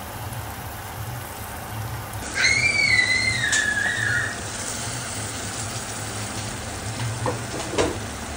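Thick sauce bubbles and simmers in a pan.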